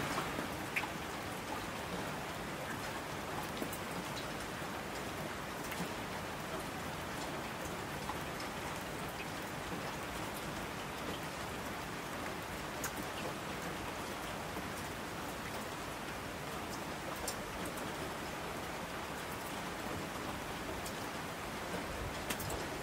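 Mountain streams rush and splash.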